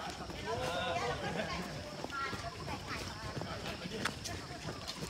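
Many footsteps patter on pavement as a crowd of runners jogs past.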